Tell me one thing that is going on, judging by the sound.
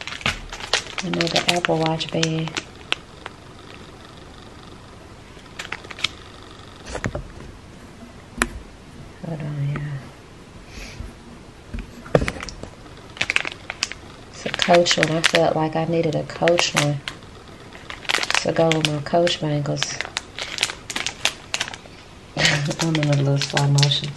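A young woman talks close by, calmly.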